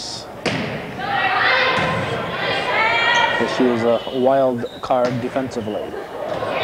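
Young women players call out and shout to each other.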